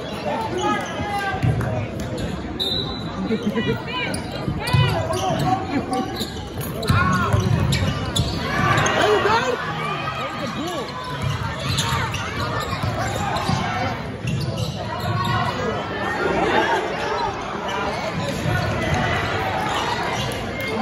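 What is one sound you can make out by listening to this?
A crowd murmurs and shouts in a large echoing gym.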